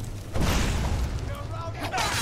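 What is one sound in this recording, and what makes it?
A magic spell crackles and hisses.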